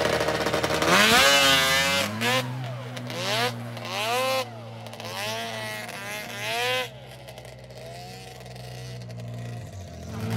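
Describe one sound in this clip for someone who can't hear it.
A snowmobile engine revs hard and races away, its whine rising and falling as it fades into the distance.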